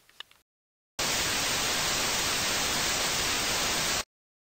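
Loud static hisses steadily, then cuts off.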